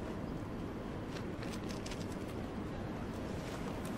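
Glasses scrape lightly on the pavement as a hand picks them up.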